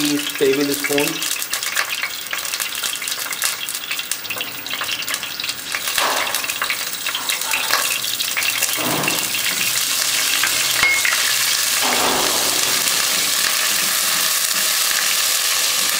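Hot oil sizzles and crackles in a pan, growing louder and steadier.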